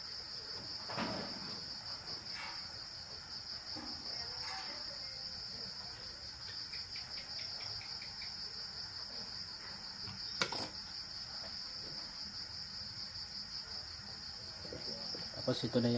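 Metal parts click and clack as a man handles them.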